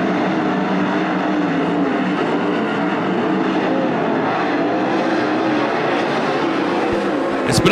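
Racing car engines roar loudly around a dirt track.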